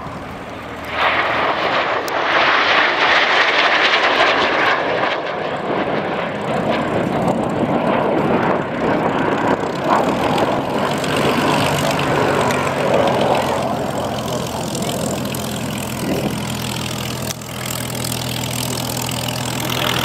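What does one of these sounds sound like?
Jet engines roar loudly overhead as a formation of jets passes.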